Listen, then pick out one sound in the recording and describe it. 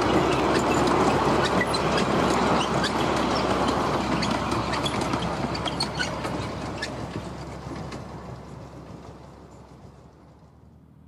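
A small train rumbles and clatters along the rails, fading into the distance.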